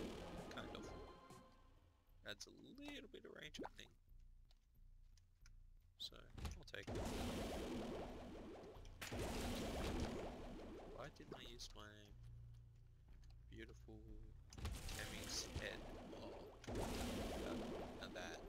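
Cartoonish game sound effects splat and pop in quick bursts.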